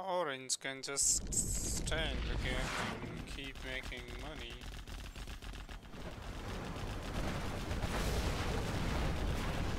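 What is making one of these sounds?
Gunfire and explosions rumble in a battle.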